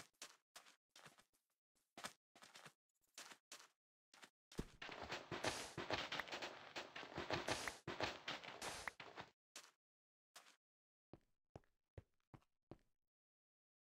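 Footsteps crunch on sand at a steady pace.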